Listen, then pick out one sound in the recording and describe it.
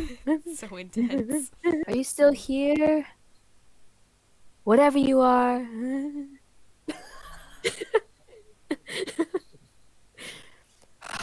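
A young woman speaks nervously and close by.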